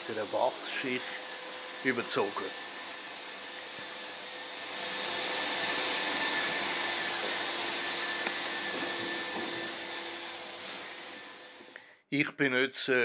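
A power tool whirs against a surface overhead.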